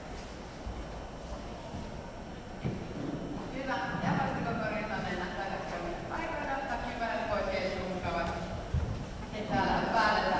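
Bare feet stamp on a wooden floor.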